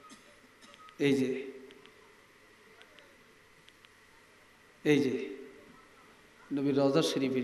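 An elderly man speaks loudly into a microphone over a loudspeaker, in bursts with pauses, in an echoing space.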